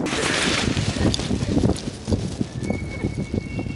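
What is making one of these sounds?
Plastic sacks rustle and flap as people run.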